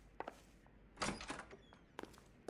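A door opens with a short rattle.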